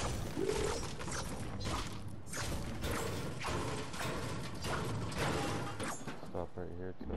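A pickaxe strikes a metal generator over and over.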